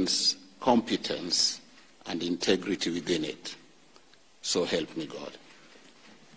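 An elderly man speaks solemnly into a microphone.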